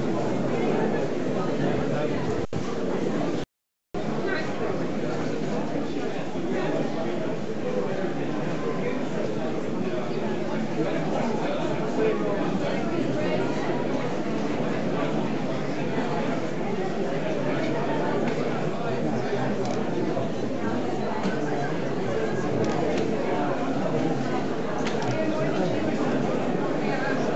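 A crowd of men and women chatters all around, close by.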